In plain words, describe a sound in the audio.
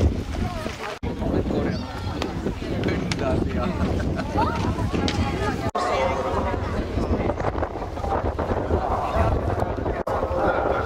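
Children chatter and call out close by.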